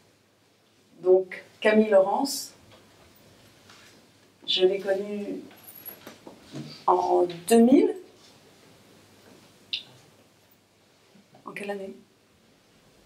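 A woman speaks thoughtfully into a microphone, pausing often.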